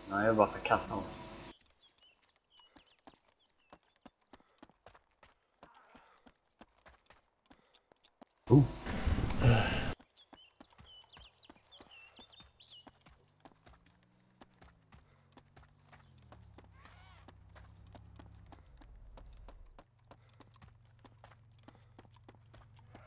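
Footsteps run quickly on a paved road.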